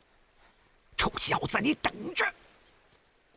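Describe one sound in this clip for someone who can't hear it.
A man shouts angrily, close by.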